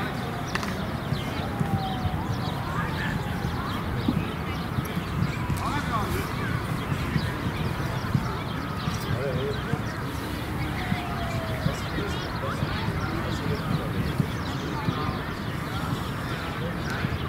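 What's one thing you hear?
Children shout and call out across an open field in the distance.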